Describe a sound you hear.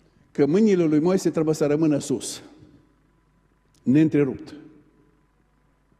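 A middle-aged man speaks with animation through a microphone in a reverberant hall.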